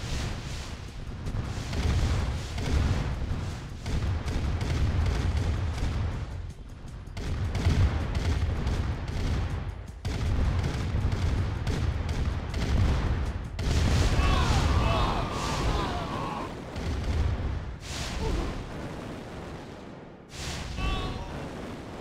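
Tank engines rumble steadily.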